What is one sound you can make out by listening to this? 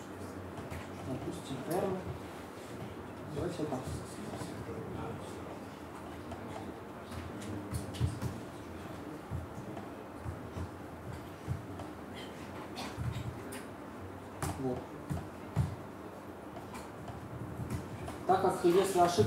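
Laptop keys click as someone types.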